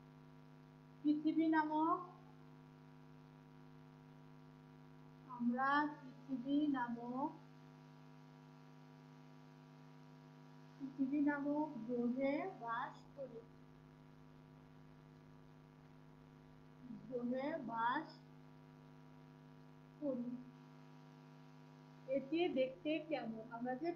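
A woman speaks slowly and clearly in short phrases, close by.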